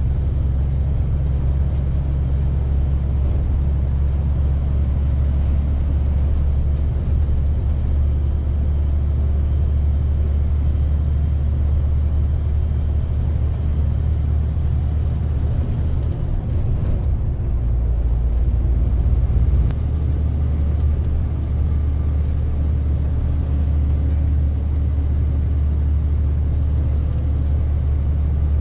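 A truck's diesel engine drones steadily from inside the cab.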